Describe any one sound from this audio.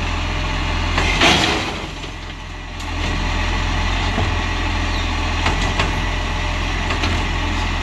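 A garbage truck's mechanical arm whirs and clanks as it lifts a bin.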